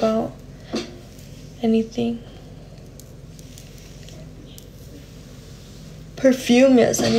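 A young woman talks with animation close to a phone microphone.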